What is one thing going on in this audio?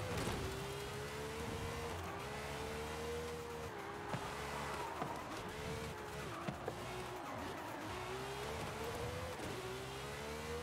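A sports car engine revs high and shifts gears.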